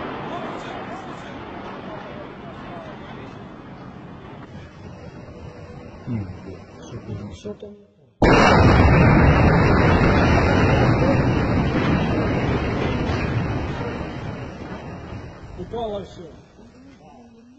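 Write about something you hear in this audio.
A building collapses with a deep, rumbling roar.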